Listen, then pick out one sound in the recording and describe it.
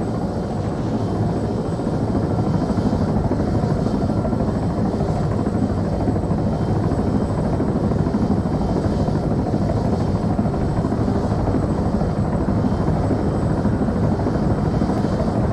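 A helicopter's engine and rotor roar steadily from inside the cabin.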